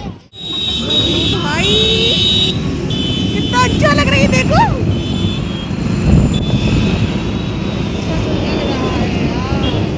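Motorcycles pass by close with buzzing engines.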